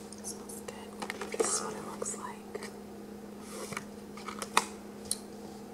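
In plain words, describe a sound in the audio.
A plastic food container crinkles and clicks close by.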